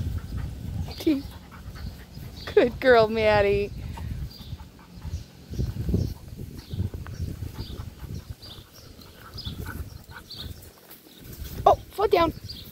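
Dogs' paws scuffle over dry straw.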